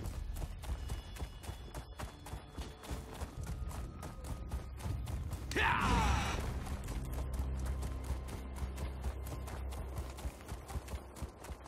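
Hooves pound the ground at a fast, steady gallop.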